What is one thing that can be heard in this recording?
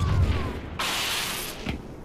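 An energy blade hums and crackles.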